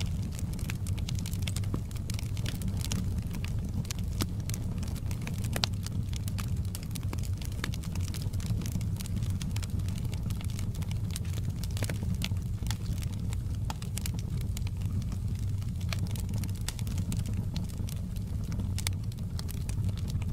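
Flames roar with a low, steady rumble.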